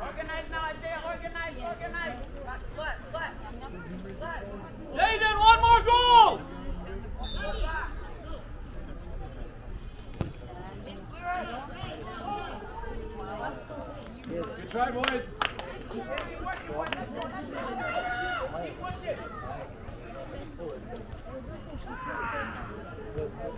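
Players shout to each other across an open field.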